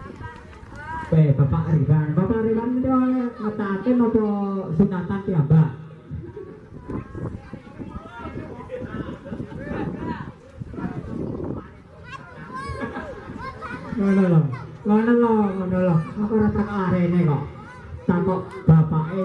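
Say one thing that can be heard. A man sings loudly through a microphone and a loudspeaker.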